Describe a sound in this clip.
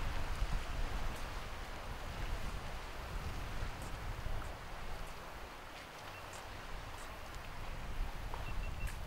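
Waves wash against rocks along the shore.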